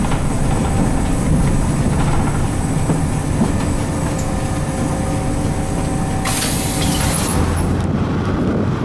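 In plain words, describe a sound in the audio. A bus engine hums steadily from inside as the bus drives along.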